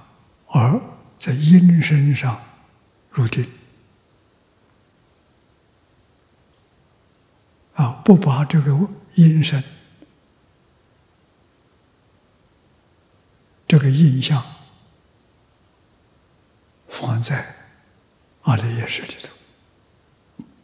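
An elderly man speaks slowly and calmly into a microphone, pausing between phrases.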